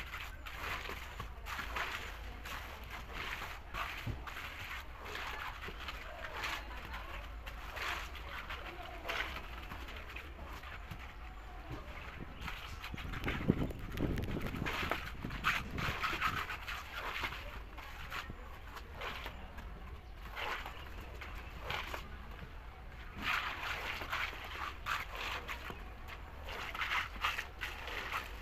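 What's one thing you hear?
Trowels scrape and slap wet concrete.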